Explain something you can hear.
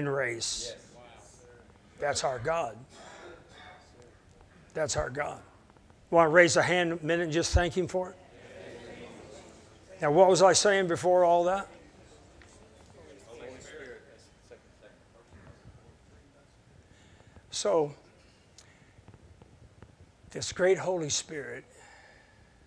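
A middle-aged man speaks with animation through a microphone, with pauses between phrases.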